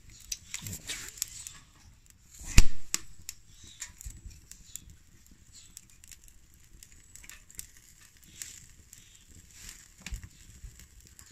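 A metal spatula scrapes and clinks against a plate and a pan.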